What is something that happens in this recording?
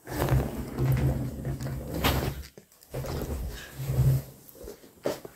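Fabric rustles as a thick blanket is handled.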